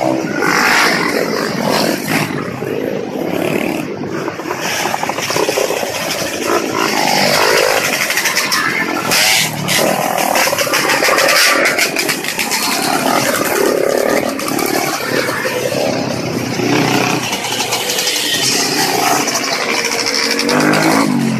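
Dirt bikes ride past one after another.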